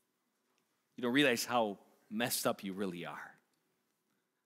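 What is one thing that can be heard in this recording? A middle-aged man speaks calmly into a microphone in a large room.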